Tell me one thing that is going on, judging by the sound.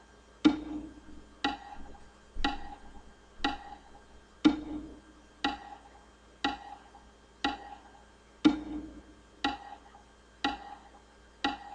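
Single plucked guitar notes play slowly and evenly, one each second, each ringing briefly.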